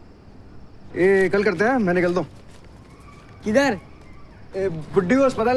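A young man talks with animation, close by.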